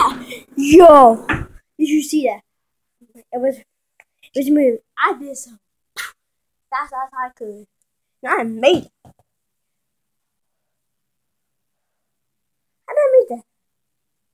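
A boy talks with animation close to a phone's microphone.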